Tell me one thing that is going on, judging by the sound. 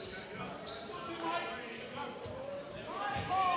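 Young men call out to each other across the court.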